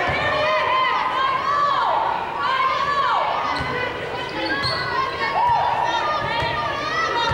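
Basketball shoes squeak on a hardwood court in a large echoing gym.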